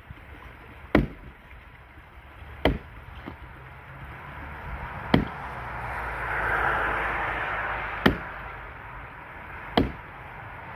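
A man's tool knocks sharply against wood every few seconds.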